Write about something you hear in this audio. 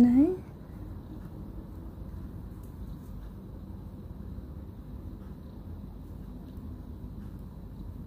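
A metal crochet hook clicks softly against thread and beads.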